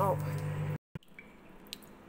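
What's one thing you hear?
Water pours into a glass pot.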